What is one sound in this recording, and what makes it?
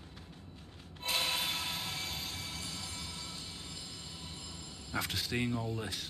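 A glassy magical burst rings out and slowly fades.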